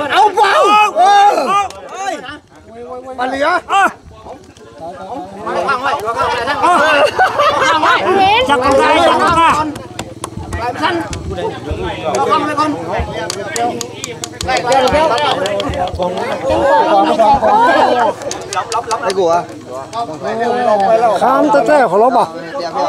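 Several young children talk and chatter excitedly close by.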